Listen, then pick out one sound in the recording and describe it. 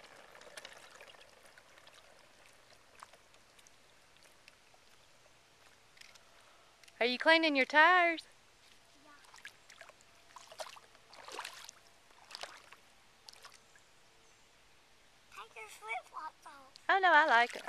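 Tricycle wheels splash softly through shallow water.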